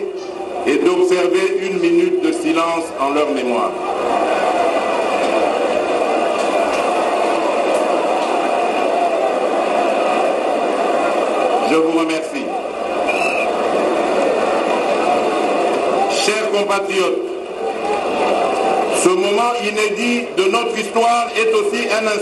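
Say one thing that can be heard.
A man speaks formally into a microphone, heard through loudspeakers outdoors.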